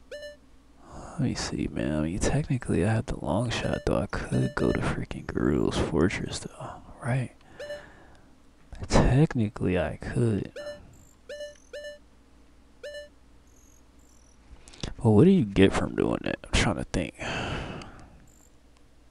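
A man talks animatedly and close to a microphone.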